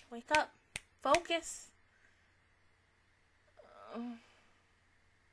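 A young woman speaks briefly and animatedly, close into a microphone.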